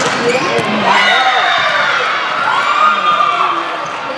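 Young women cheer together.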